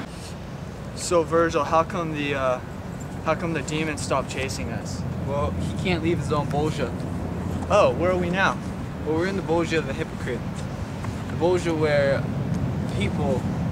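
A young man talks with animation close by, outdoors.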